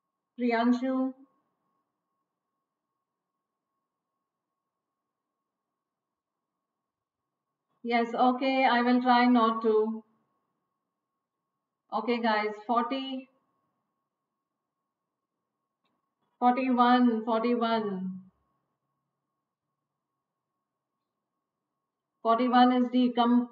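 A middle-aged woman speaks calmly into a close microphone, in short phrases with long pauses.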